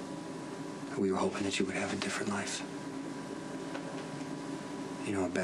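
A young man speaks quietly and calmly nearby.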